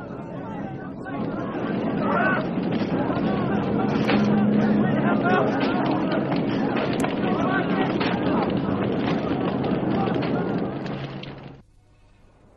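A crowd of people shouts and cries out.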